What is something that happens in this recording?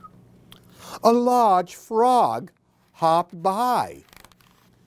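An older man reads aloud close by in an animated, sing-song voice.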